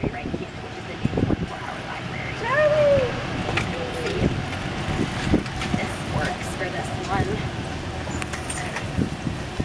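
Tyres roll over pavement outdoors.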